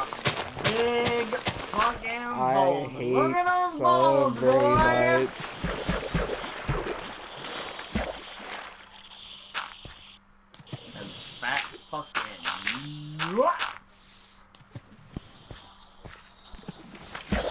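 Blocks of dirt and stone crunch as they are dug out.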